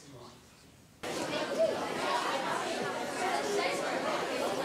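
A crowd of young women and men chatter together nearby.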